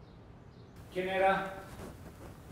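A young boy asks a short question nearby.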